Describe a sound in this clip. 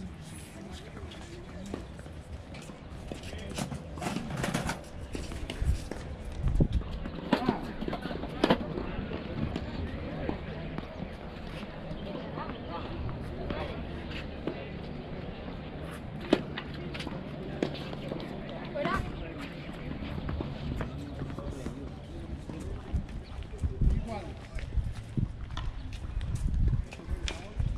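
A tennis ball is hit back and forth with a racket, far off.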